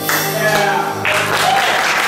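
A small band with flute, clarinet, guitar and drums plays a final held note in an echoing room.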